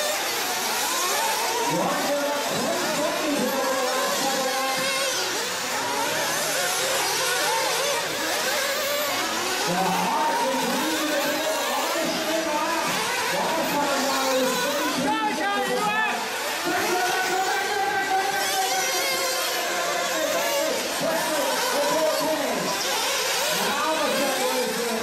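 Small electric racing cars whine as they speed over a dirt track.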